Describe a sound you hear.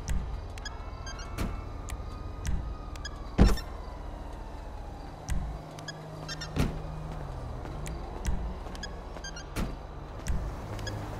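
Short electronic beeps and clicks sound now and then.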